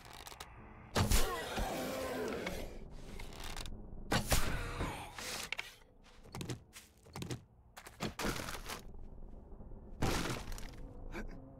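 A blade stabs into flesh with wet, heavy thuds.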